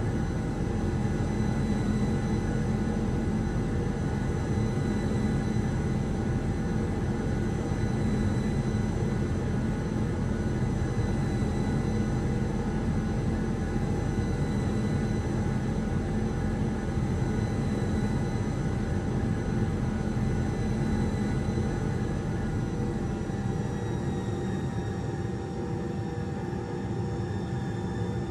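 A jet engine roars steadily with a high whine, heard from inside an airliner cabin.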